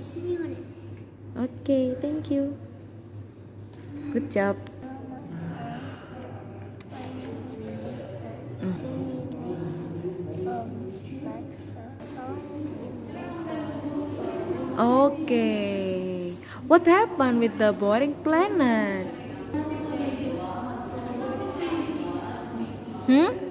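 A young boy speaks slowly and clearly, close by.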